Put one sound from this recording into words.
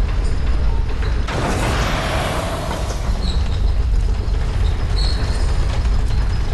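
A heavy wooden lift rumbles and creaks as it descends.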